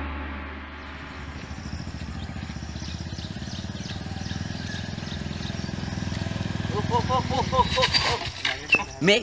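A motorcycle engine hums as it approaches and idles nearby.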